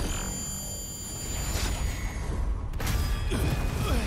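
An energy beam blasts and crackles.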